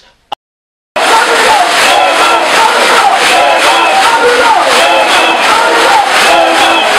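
A crowd chants and sings loudly outdoors.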